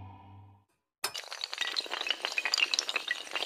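Dominoes clatter rapidly as they topple one after another.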